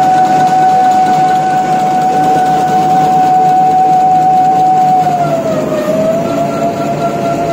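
A paper machine hums and whines steadily, its pitch dipping briefly.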